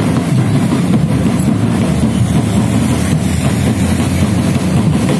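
A motorbike engine rumbles nearby.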